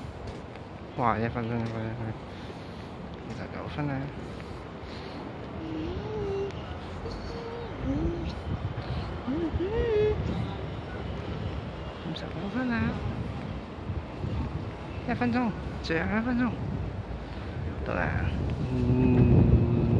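Adults chat at a distance outdoors.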